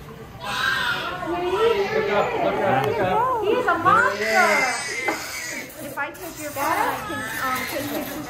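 A newborn baby cries loudly.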